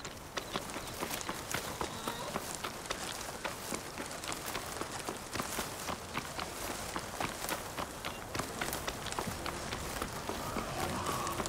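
Footsteps rustle steadily through tall grass.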